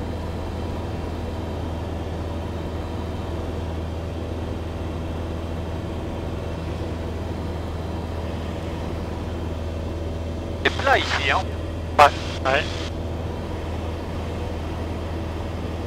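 A small aircraft's engine drones steadily in flight.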